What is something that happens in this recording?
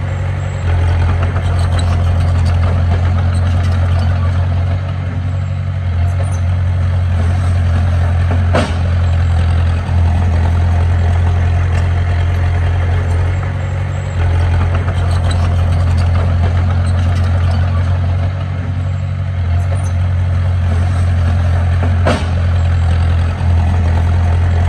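A small bulldozer's diesel engine rumbles steadily close by.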